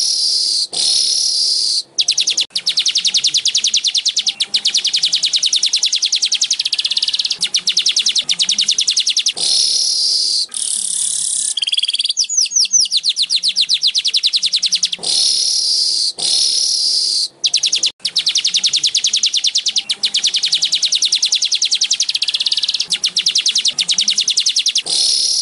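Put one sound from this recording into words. A small bird sings a long, fast, buzzing and chattering song close by.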